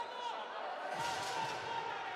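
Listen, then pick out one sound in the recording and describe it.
A handball thumps as it is thrown at a goal.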